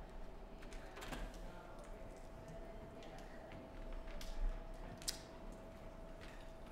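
Footsteps tap across a wooden floor.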